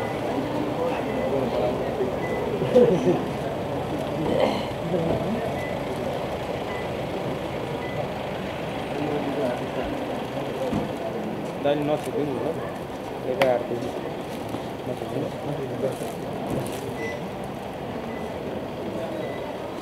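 A crowd of men and women murmur and chatter nearby.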